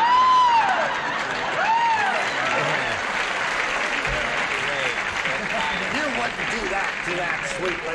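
A woman laughs heartily.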